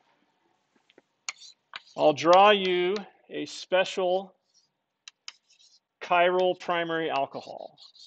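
Chalk taps and scrapes on a chalkboard.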